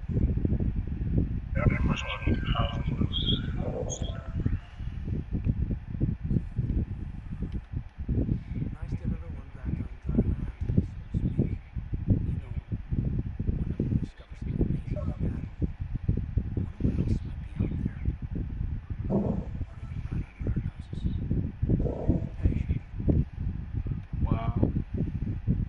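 A man talks steadily and close to a microphone.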